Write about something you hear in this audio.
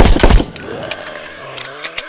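A pistol magazine clicks out during a reload.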